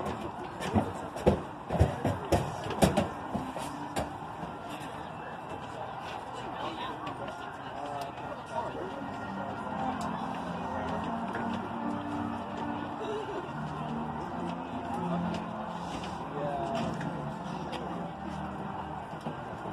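A large crowd murmurs and chatters in an open-air stadium.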